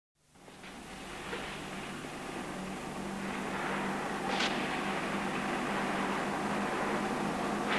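Paper rustles softly under a man's hands.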